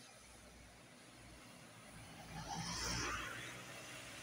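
A small van drives past on a wet road.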